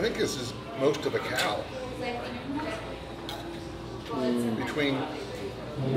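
A man slurps from a bowl.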